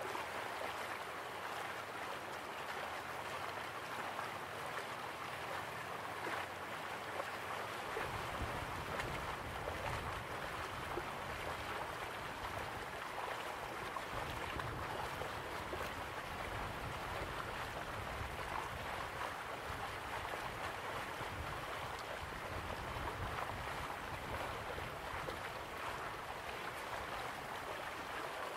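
Water splashes steadily down a small waterfall into a pool.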